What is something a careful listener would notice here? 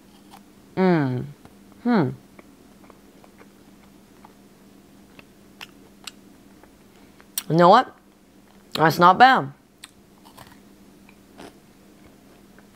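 A young man chews a crunchy wafer bar.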